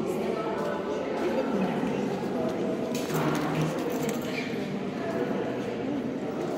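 Several adults murmur softly in a large, echoing hall.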